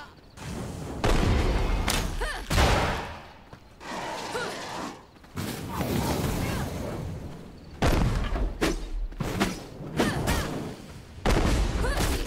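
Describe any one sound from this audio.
A fiery blast bursts with a loud whoosh.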